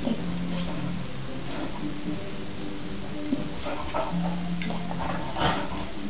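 A dog growls low while tugging a toy.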